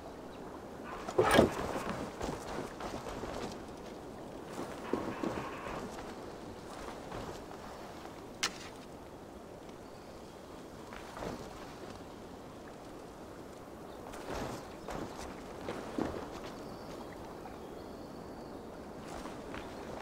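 Footsteps crunch on dirt and grass as a warrior runs.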